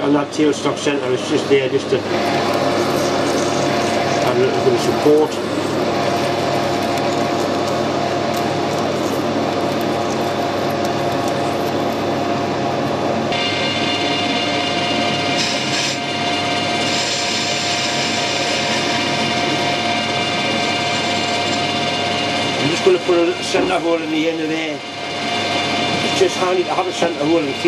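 A lathe motor whirs steadily.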